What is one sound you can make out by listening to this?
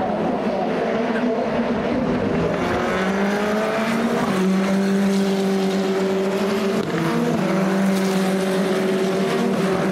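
Racing car engines scream at high revs and shift through gears as they pass close by.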